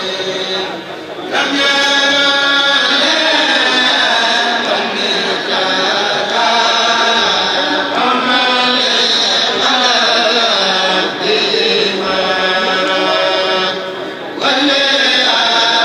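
A group of men chant together loudly through microphones in a large echoing hall.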